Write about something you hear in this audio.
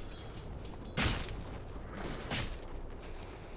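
A loud magic burst explodes.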